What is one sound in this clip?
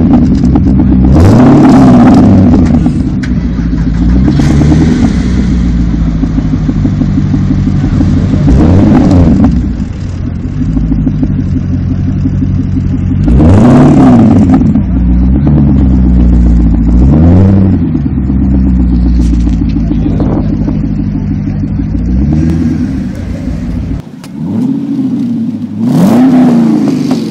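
A sports car's engine revs up loudly again and again and drops back to idle.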